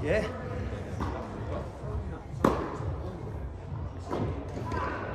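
Tennis balls are struck with rackets in a large echoing hall.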